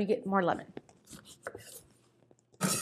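A knife cuts through a lemon on a wooden board.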